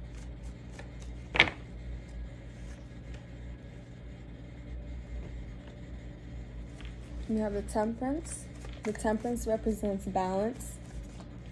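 Playing cards riffle and slap softly as they are shuffled by hand.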